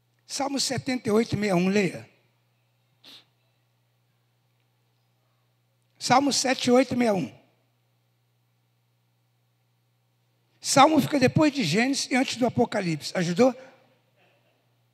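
A man speaks into a microphone with emphasis, in bursts with pauses, heard through loudspeakers.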